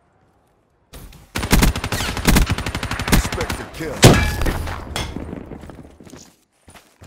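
Rapid automatic gunfire rattles.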